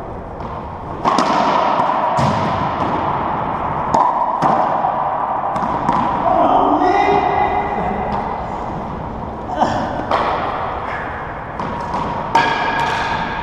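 A racquetball cracks off racquets and walls in an echoing court.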